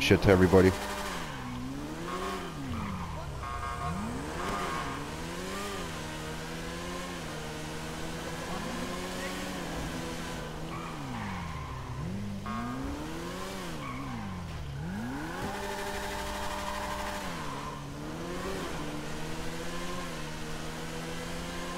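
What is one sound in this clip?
A motorcycle engine revs up and down as the bike rides.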